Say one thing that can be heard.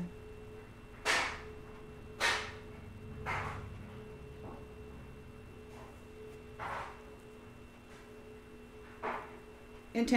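Small objects click and tap in a woman's hands.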